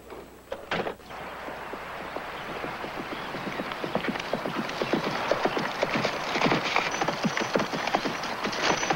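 A horse's hooves pound on soft ground, growing louder as it approaches.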